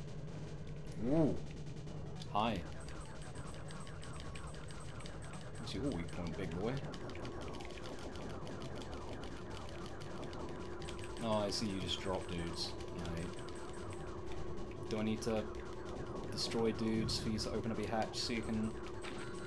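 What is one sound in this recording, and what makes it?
Laser shots zap in quick bursts.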